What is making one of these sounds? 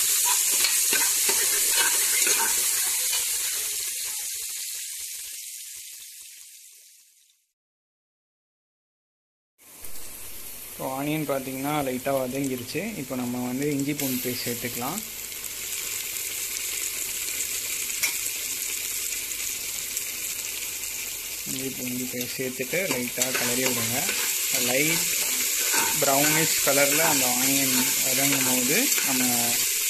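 Onions sizzle steadily in hot oil.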